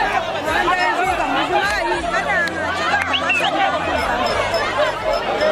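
A large crowd of men and women shouts and calls out loudly outdoors.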